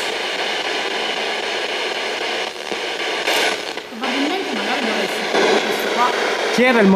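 A radio crackles with steady static close by.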